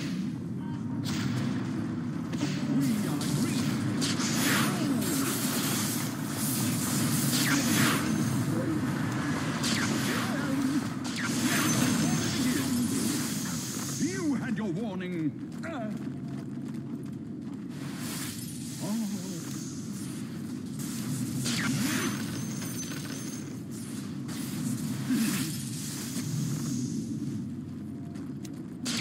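Weapons clash and strike during a fight.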